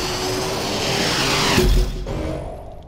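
A magical blast bursts with a loud rushing whoosh.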